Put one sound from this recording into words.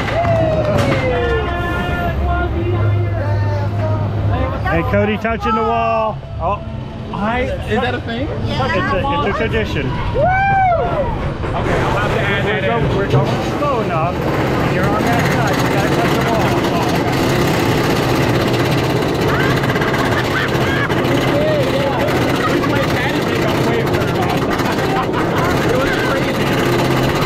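An older man laughs close by.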